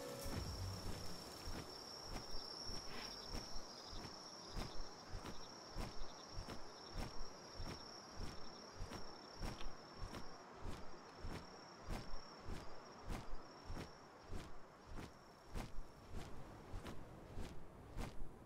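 Large wings flap in a steady rhythm.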